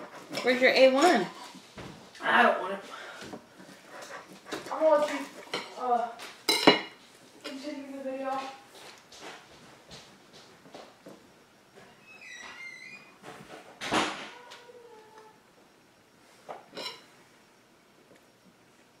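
Cutlery scrapes and clinks on a plate.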